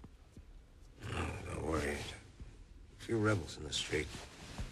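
An older man speaks in a low, reassuring voice.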